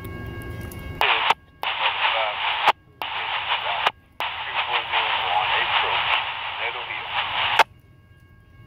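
Air hisses loudly from a train in bursts.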